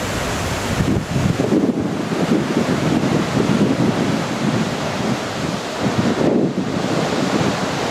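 Wind blows hard across the microphone in gusts.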